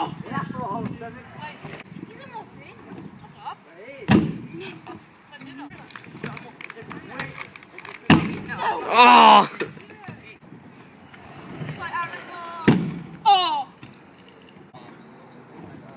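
Scooter wheels roll over a wooden ramp.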